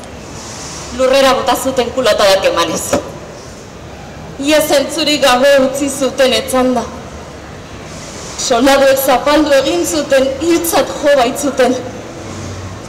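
A woman sings in short phrases.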